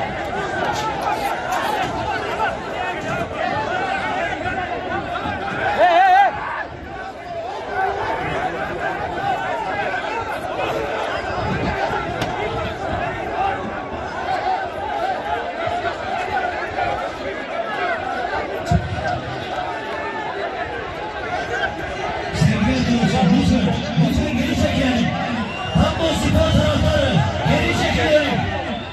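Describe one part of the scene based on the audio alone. A crowd of men shouts and clamours outdoors.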